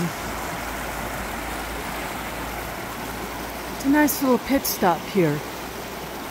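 A stream rushes and burbles over rocks nearby.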